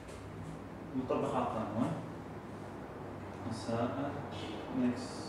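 A young man speaks calmly, explaining, close by.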